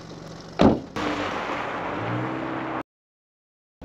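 A car engine hums as the car drives away.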